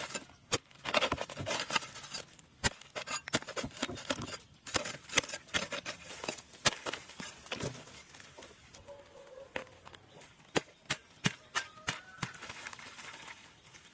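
Loose earth and roots scatter and rustle.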